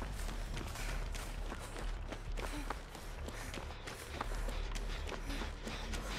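Footsteps crunch through dry grass and undergrowth.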